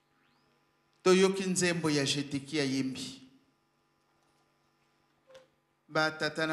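A middle-aged woman sings into a microphone.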